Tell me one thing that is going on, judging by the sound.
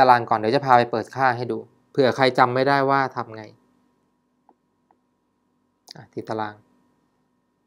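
A young man speaks calmly and close, as if explaining.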